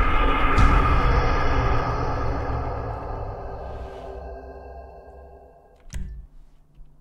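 A dramatic musical sting plays loudly and slowly fades away.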